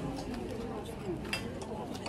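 Ceramic bowls clink as they are handled.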